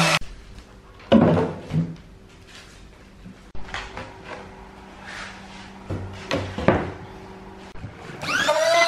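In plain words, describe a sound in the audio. A wooden board knocks and scrapes as it is moved.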